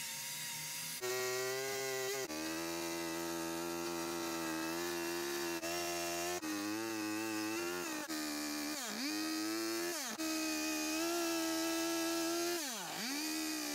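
A chainsaw engine roars and revs up and down.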